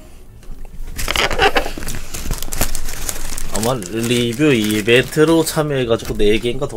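A cardboard box rustles and crinkles as it is opened.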